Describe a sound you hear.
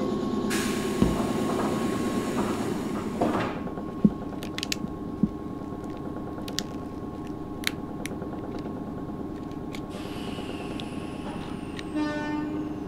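A plastic fork taps and scrapes against a food tray.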